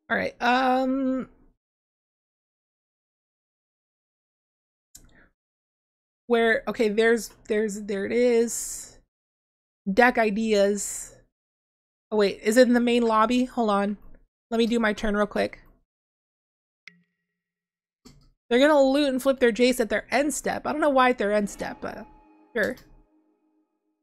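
A young woman talks calmly into a close microphone, in short bursts with pauses.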